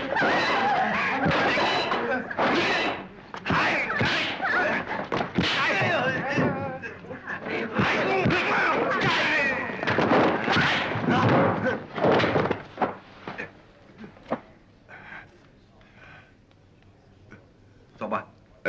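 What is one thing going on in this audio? Men shout and grunt loudly close by.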